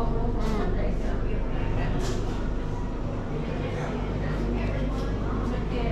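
A young woman chews crunchy pastry.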